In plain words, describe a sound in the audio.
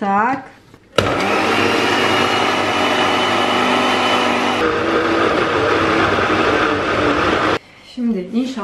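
A blender whirs loudly, crushing fruit.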